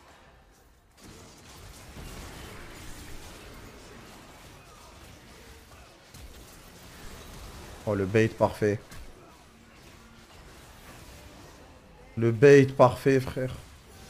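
Game sound effects of spells and clashes play.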